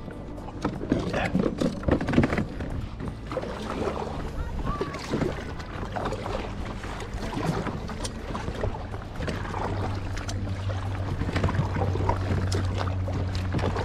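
A paddle splashes and dips into water in a steady rhythm.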